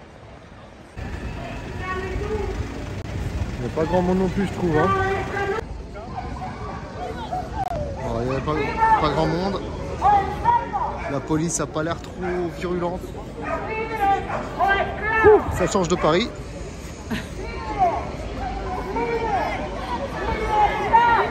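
A large crowd talks and shouts outdoors.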